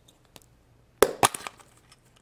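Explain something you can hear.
A plastic capsule pops open with a click.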